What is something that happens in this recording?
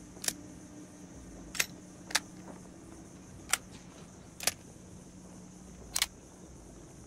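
Short, sharp menu clicks sound every second or so.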